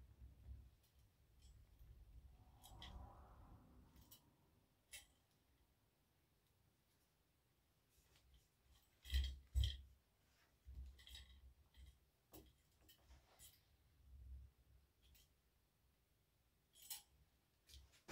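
Small metal parts click and rattle.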